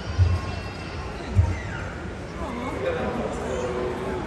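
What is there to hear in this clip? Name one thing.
A young woman talks to a sea lion.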